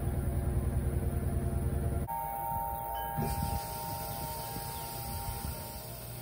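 A washing machine hums and rumbles as its drum turns.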